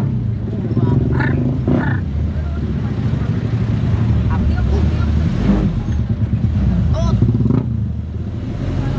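A vehicle engine rumbles steadily nearby.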